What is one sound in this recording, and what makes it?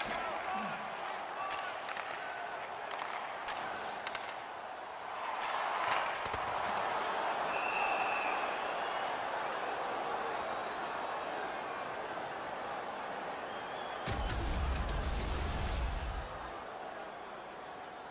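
A large crowd roars and cheers in an echoing arena.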